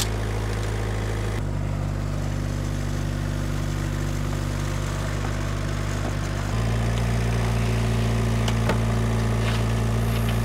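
A small diesel engine rumbles steadily close by, changing pitch as it works.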